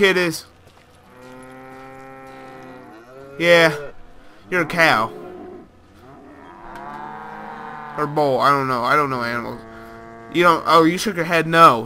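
A cow lows nearby.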